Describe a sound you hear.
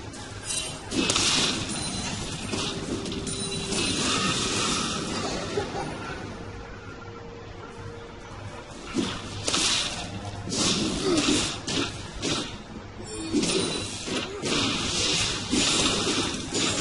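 Magical spells whoosh and crackle in a fight.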